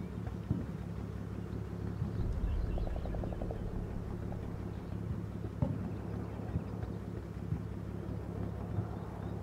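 Distant explosions thud now and then.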